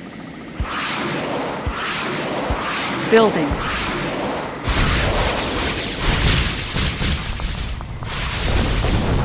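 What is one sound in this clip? Cannons boom and shells explode in bursts.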